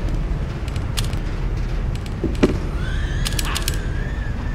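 Short menu clicks sound a few times.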